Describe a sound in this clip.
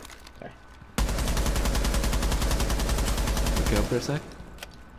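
A rifle fires in a rapid, rattling burst.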